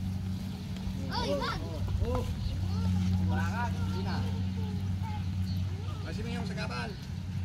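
Men talk to each other outdoors, a little way off.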